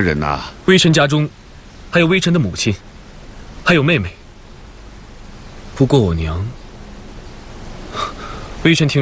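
A young man speaks calmly and clearly, close by.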